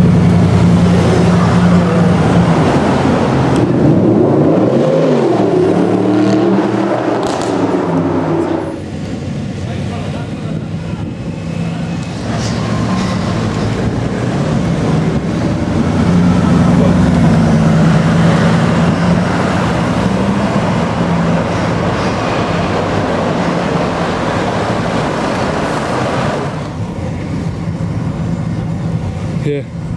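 A sports car engine rumbles deeply as the car drives slowly along a street.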